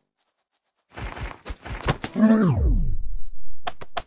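Heavy blows land with sharp thuds in quick succession.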